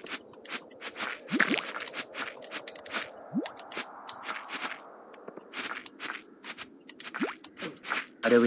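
Footsteps patter quickly over soft grass.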